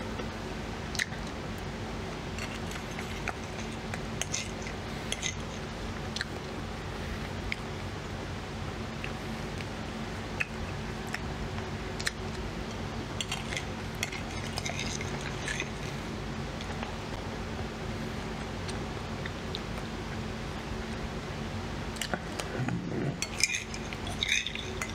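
A metal spoon clinks and scrapes against a plate.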